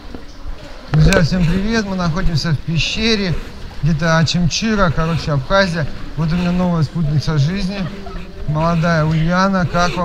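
A man talks loudly nearby.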